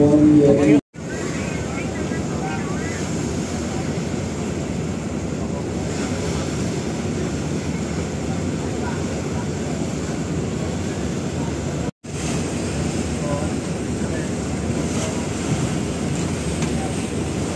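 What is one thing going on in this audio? Water churns and splashes around a boat.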